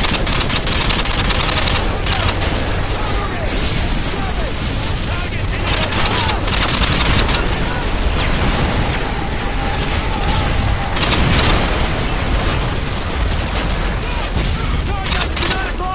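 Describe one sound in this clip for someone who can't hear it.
Automatic rifle fire cracks in rapid bursts.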